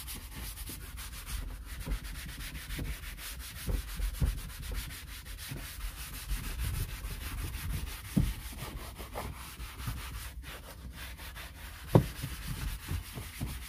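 A gloved hand scrubs and wipes a plastic panel with a soft rubbing sound.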